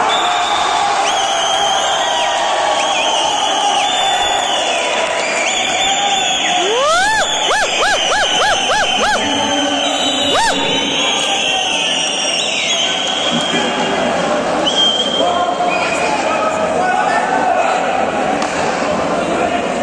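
A large crowd cheers and shouts loudly in an echoing indoor hall.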